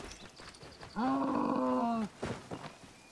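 A camel groans loudly.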